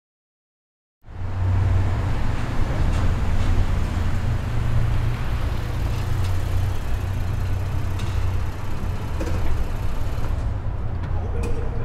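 A car engine rumbles low and steady in an echoing space.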